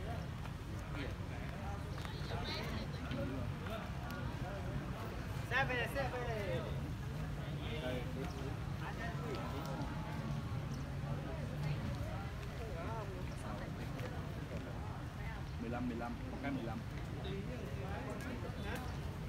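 Several adults talk casually nearby, outdoors.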